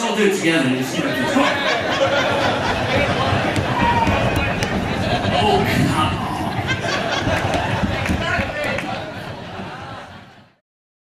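A man sings loudly into a microphone, heard through a loudspeaker.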